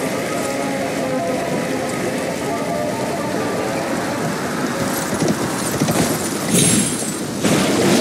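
Rain patters down steadily.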